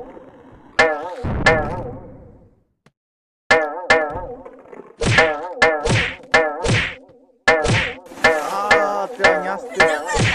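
Cartoonish thuds and splats sound as a falling figure crashes into obstacles.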